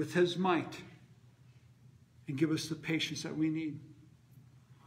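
A middle-aged man speaks with emphasis close by.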